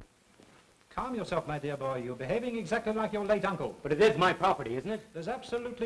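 A man speaks calmly in a room.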